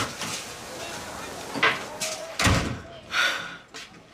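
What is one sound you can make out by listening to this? A young woman sobs and whimpers.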